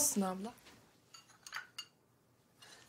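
A teacup clinks on a saucer.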